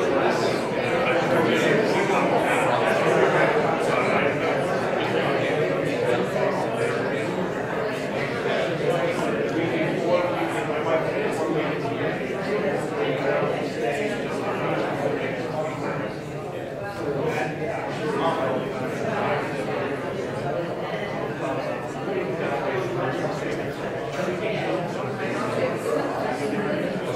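A crowd of people chatter at once in a large room.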